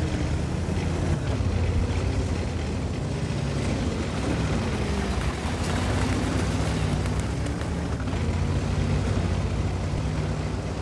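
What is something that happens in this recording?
Tank tracks clatter and squeak over dirt.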